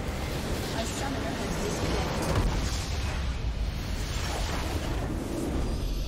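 A base structure explodes with a deep rumbling blast.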